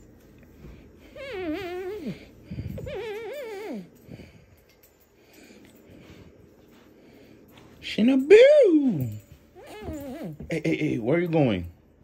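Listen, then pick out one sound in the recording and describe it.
A dog whines and yelps in high, wavering cries.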